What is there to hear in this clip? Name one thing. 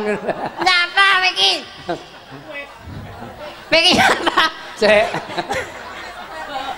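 A young woman sings loudly through a microphone.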